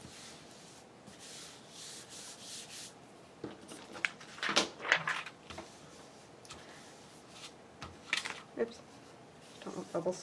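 Hands fold and crease stiff paper.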